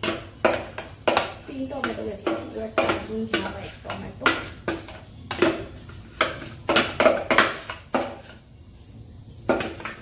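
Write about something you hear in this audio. A plastic blender jar knocks against a bowl.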